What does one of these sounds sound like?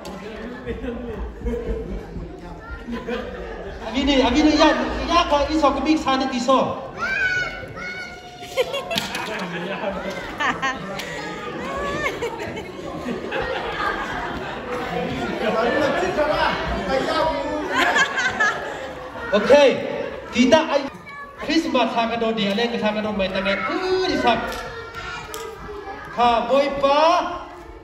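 A group of men sing together in a large echoing hall.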